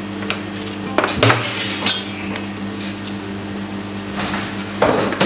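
A metal scraper knocks and scrapes against a metal tabletop.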